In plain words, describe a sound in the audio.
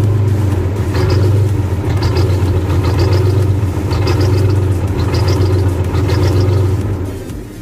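Steam hisses and spurts in bursts from the engine.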